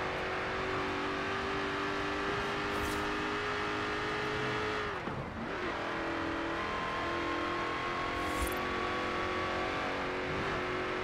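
A car engine roars steadily at high revs, dropping briefly as the gear shifts and then climbing again.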